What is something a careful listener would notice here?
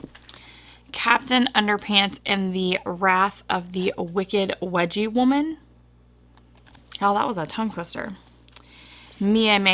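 A woman speaks calmly and with animation close to a microphone.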